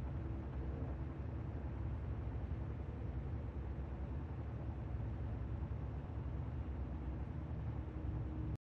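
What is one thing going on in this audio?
A tank engine idles with a deep, steady rumble.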